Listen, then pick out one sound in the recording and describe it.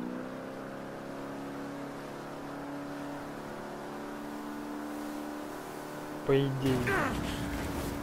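Water splashes against a speeding boat's hull.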